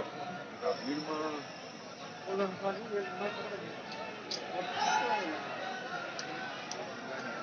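A crowd of men shouts and clamours outdoors at a distance.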